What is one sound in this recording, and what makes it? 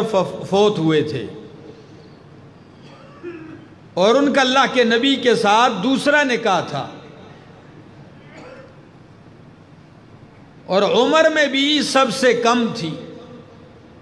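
A man speaks with emphasis into a microphone, in short bursts with pauses, heard through a loudspeaker.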